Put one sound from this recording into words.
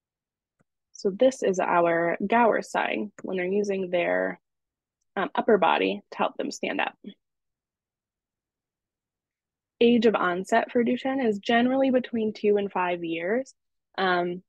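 A young woman speaks calmly into a microphone, as if on an online call.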